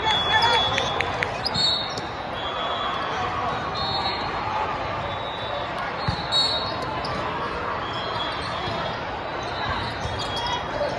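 Young men call out to each other on a court.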